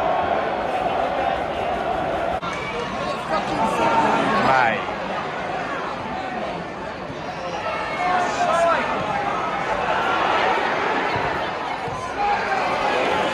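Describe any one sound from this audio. A large stadium crowd chants and sings loudly outdoors.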